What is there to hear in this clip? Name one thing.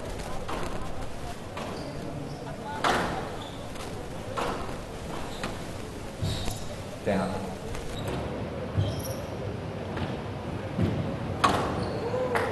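A squash ball smacks sharply off racquets and walls.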